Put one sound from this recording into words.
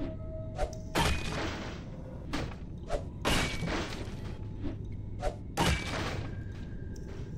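An axe chops into a wooden door, and the planks crack and splinter.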